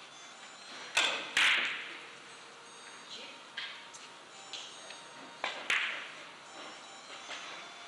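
Billiard balls click sharply against each other and the cushions.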